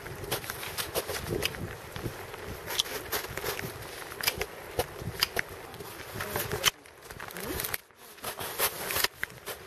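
Pruning shears snip through branches with sharp clicks.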